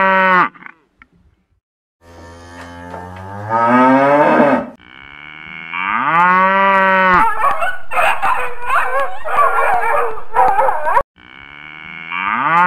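A cow moos loudly in long, drawn-out calls.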